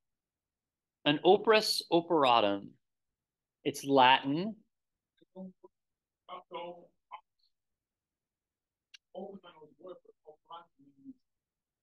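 A man speaks calmly through a computer microphone, in pauses.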